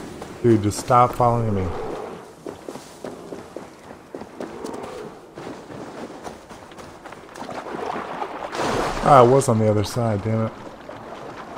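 An elderly man speaks with animation close to a microphone.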